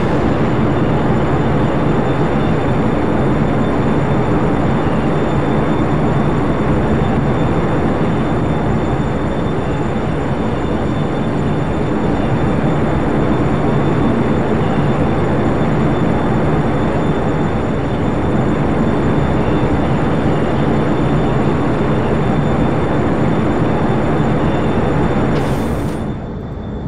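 Wind roars loudly through an open hatch.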